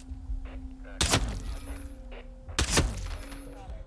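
A pistol fires two loud, echoing shots.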